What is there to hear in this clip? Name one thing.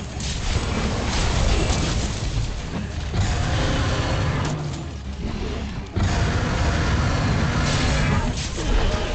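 A blade clangs and slashes against hide.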